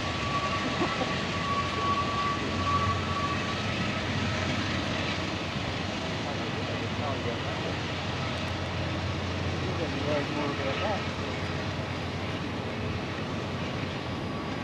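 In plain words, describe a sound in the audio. A freight train rumbles along the tracks in the distance.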